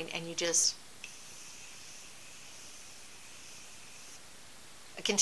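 A spray bottle hisses softly as it sprays mist.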